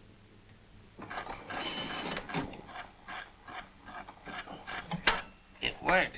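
A gramophone crank ratchets as it is wound.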